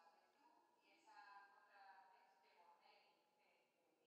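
A man speaks faintly through an online call.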